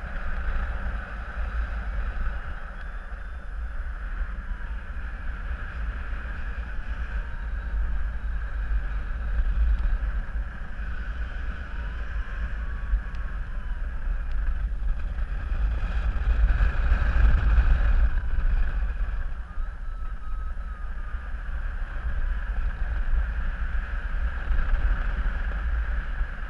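Wind rushes and buffets steadily outdoors, high in the air.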